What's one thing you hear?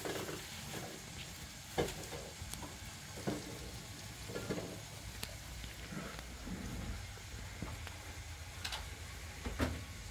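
Dishes clink and clatter close by.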